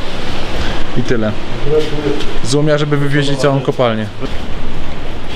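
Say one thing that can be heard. A man speaks close by in a low, drawn-out voice.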